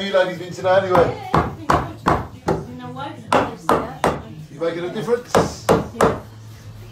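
A hammer strikes wood in quick, heavy blows.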